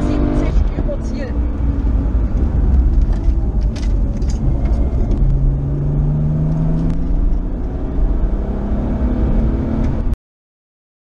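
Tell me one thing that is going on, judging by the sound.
Tyres rumble on a paved road.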